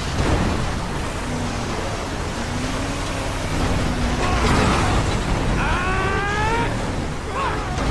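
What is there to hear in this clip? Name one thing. A car engine roars as it drives over rough dirt.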